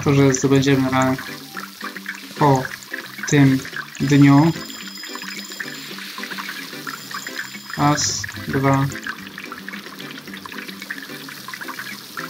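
Oil sizzles as doughnuts fry.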